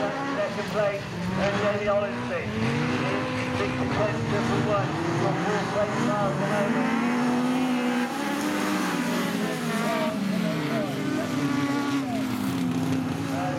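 Car engines rise and fall in pitch as gears change.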